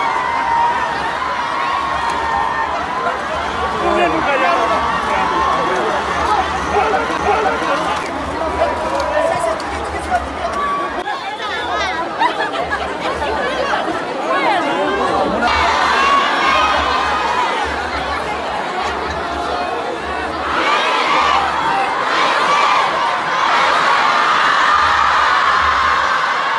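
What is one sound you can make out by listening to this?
A large crowd outdoors cheers and shouts loudly.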